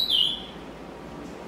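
A small bird gives a short, sharp, high chirp.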